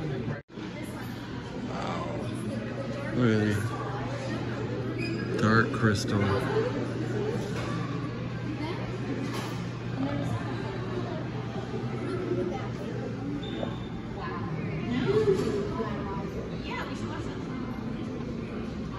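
A crowd of adults chatter quietly nearby in an echoing room.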